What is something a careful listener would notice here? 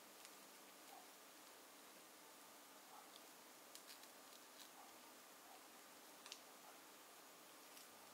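A knife cuts into a soft dried fruit.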